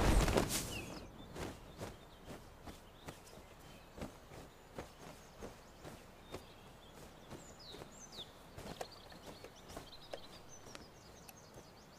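Cloth rustles as hands rummage through a bundle.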